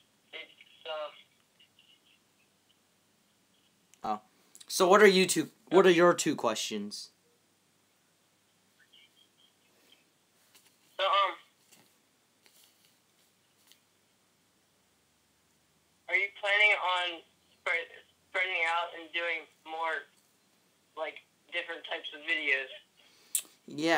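A teenage boy talks close by, with animation, in short bursts.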